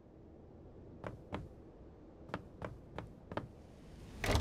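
Footsteps knock on wooden boards.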